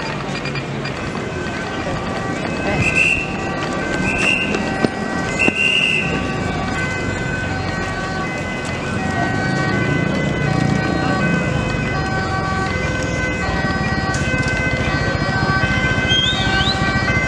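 An ambulance siren sounds in a two-tone pattern.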